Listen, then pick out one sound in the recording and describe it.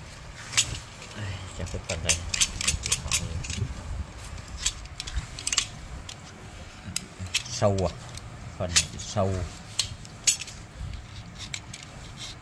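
A knife blade scrapes and taps against wood in short strokes.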